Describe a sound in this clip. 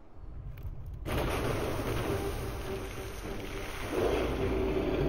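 A deep, loud rumbling swells and roars.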